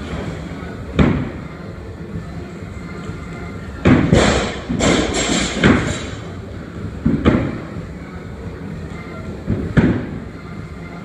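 Feet thud heavily onto a wooden box in a room with some echo.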